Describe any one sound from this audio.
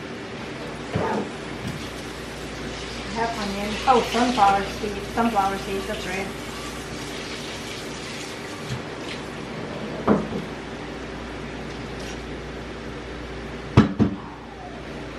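A man clatters pots and pans at a stove.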